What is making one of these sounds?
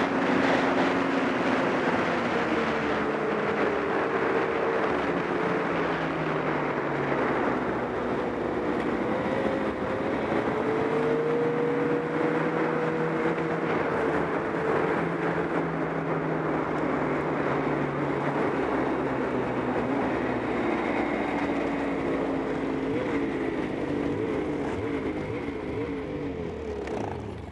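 A snowmobile engine drones steadily, its pitch rising and falling with the throttle.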